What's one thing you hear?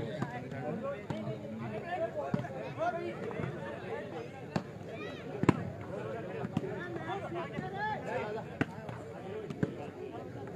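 A crowd chatters and shouts outdoors.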